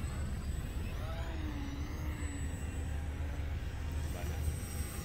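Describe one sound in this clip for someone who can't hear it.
A model airplane's motor whines overhead, rising and falling in pitch.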